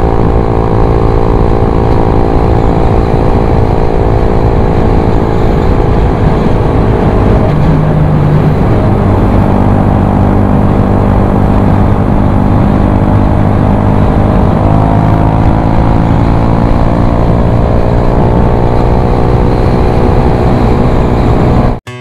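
A motorbike engine hums steadily, its pitch shifting as it speeds up and slows down.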